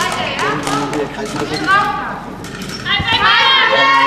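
Spectators cheer and shout from the side of the hall.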